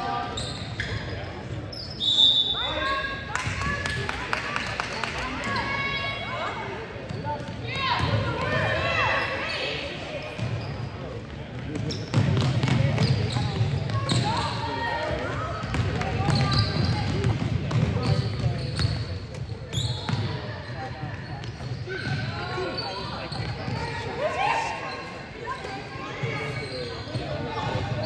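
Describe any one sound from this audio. Spectators in an echoing gym chatter and cheer.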